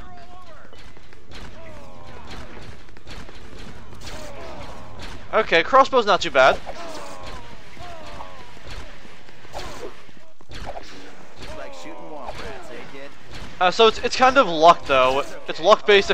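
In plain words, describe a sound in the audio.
Laser rifles fire in rapid bursts.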